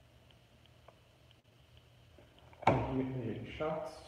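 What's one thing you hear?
A cardboard box is set down on a table with a light knock.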